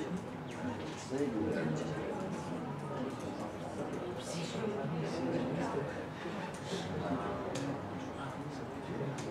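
A middle-aged man lectures calmly in an echoing room.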